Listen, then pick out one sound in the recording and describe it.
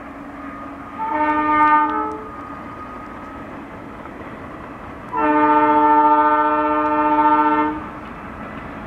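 A train horn sounds twice, loud and long.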